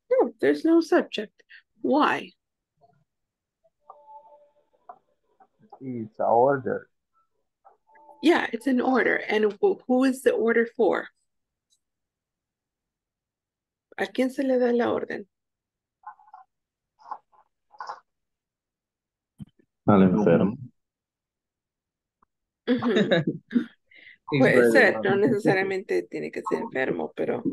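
A woman speaks calmly in bursts over an online call.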